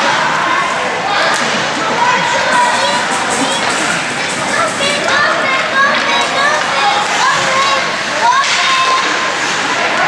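Young players shout to each other across an echoing rink.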